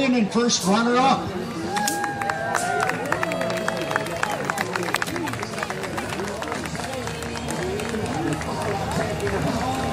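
Young women on a boat call out and cheer nearby.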